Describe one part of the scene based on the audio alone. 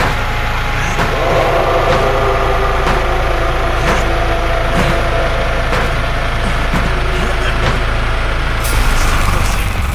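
A small generator engine hums and rattles steadily.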